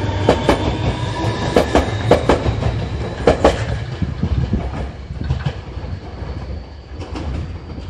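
A train rumbles past close by, its wheels clacking in pairs over the rail joints, then fades away.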